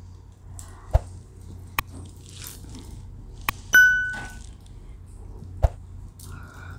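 A metal lemon squeezer clicks as it is pressed shut.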